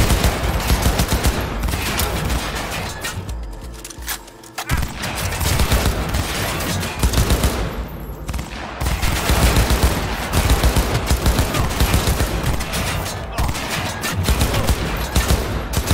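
Rapid gunfire bursts out in quick, loud volleys.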